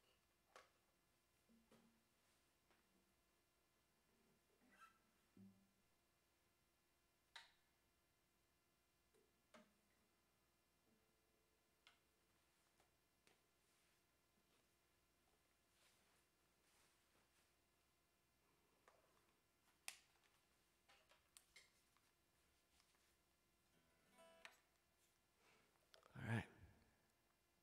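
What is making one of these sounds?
A man's hands bump and knock against guitars.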